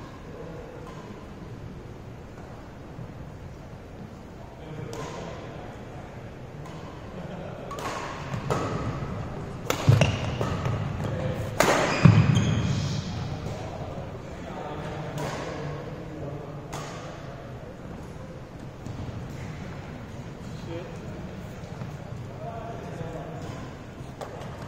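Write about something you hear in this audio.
Rackets strike shuttlecocks with sharp pops, echoing in a large hall.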